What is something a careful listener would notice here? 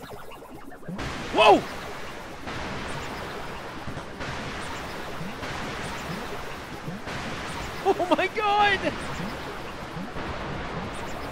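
Soft electronic game music plays steadily.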